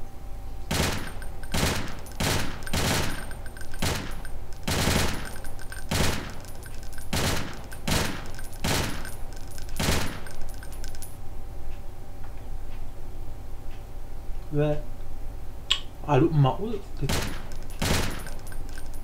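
Rapid gunshots fire in short bursts from a game.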